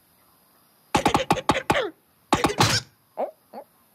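A bird's beak knocks hard against wood.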